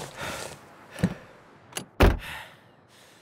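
A car door clunks open.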